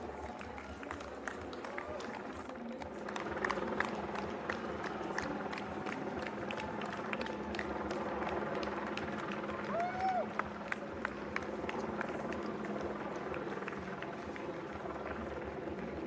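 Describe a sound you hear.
Running shoes patter quickly on asphalt.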